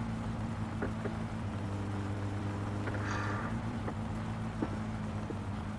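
Tyres rumble over a gravel road.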